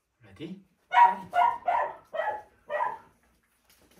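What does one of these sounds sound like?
A small dog barks several times in quick succession.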